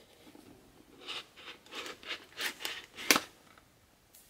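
A knife blade slits through plastic wrap.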